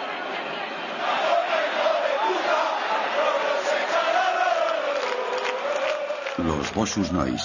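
Men in a crowd chant and shout loudly.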